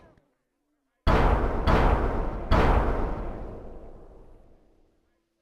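A giant robot stomps down with heavy, echoing booms.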